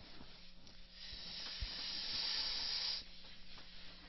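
A board eraser rubs steadily across a chalkboard.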